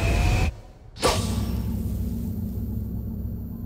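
A rocket engine roars steadily as a craft lifts off.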